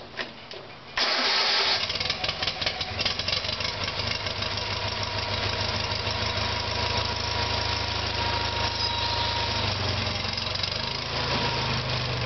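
A tractor engine idles with a steady, throbbing rumble.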